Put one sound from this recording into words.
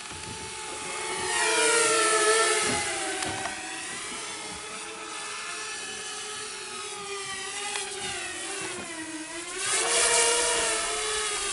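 A small drone's propellers whine loudly, rising and falling in pitch as it races past.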